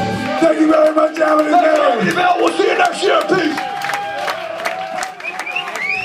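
A man shouts into a microphone over the music.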